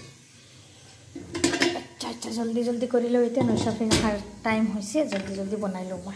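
A metal lid clanks against a metal pot.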